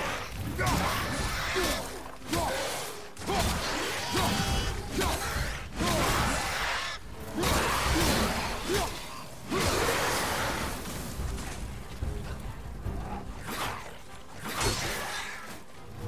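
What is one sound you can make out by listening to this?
Heavy blows thud and crash in a game fight.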